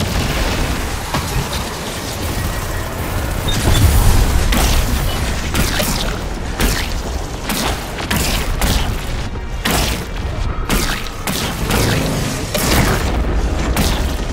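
Energy blasts crackle and zap.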